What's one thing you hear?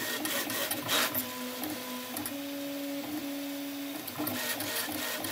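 A 3D printer's stepper motors whine in shifting tones as the print head moves.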